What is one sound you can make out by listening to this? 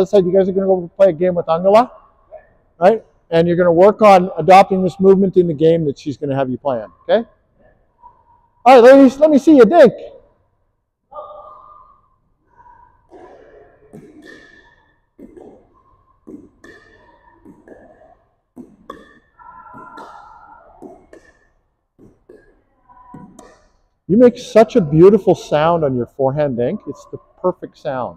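A man talks close by with animation in an echoing hall.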